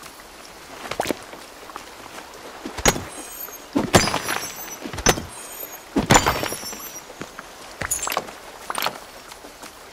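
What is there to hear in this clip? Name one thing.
A pickaxe strikes rock with sharp clinks.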